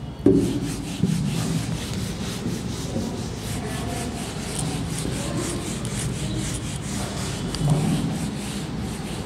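A cloth duster rubs rapidly across a whiteboard.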